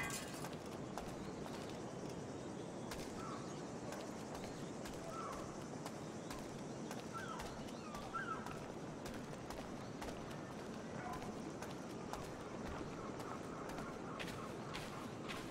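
Footsteps walk on stone paving.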